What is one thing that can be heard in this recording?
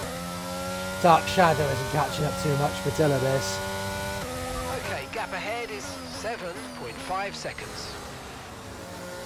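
A young man speaks excitedly through a microphone.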